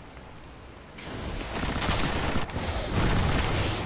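A loud explosion roars and crackles.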